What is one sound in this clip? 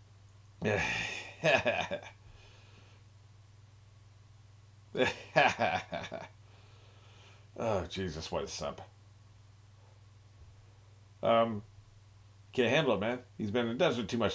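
A man talks with animation close by.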